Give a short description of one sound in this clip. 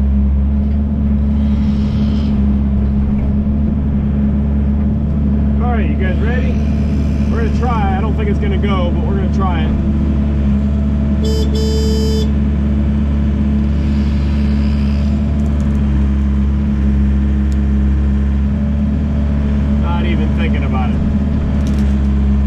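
A heavy diesel engine rumbles steadily close by.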